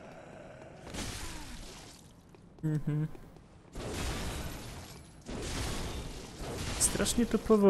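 Heavy weapon swings whoosh and thud.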